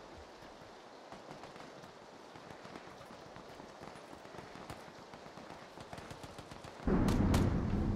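Footsteps patter quickly across hard ground.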